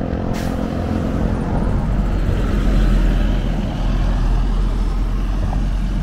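A large bus rumbles past close by.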